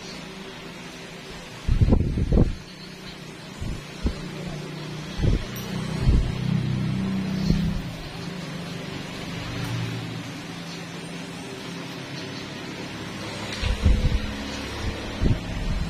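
A small metal tool scrapes and clicks against a toenail.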